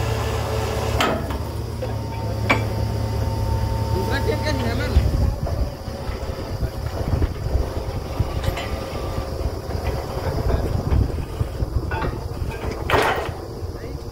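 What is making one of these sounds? Metal clanks against metal on a drilling rig.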